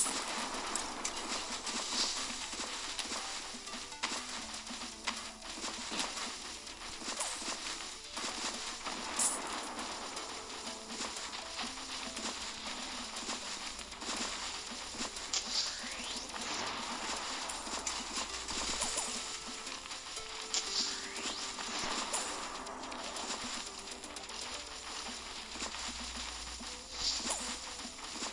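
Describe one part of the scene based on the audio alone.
Light game music plays steadily.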